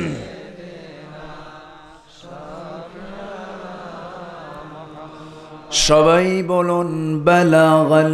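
A man chants in a sustained melodic voice through a microphone and loudspeakers, growing much louder toward the end.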